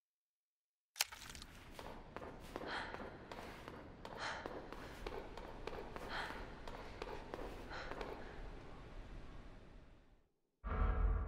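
Footsteps walk slowly on a hard floor in an echoing space.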